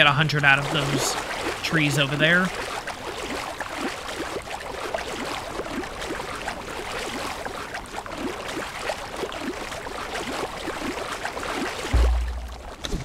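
Water splashes steadily as a swimmer strokes through it.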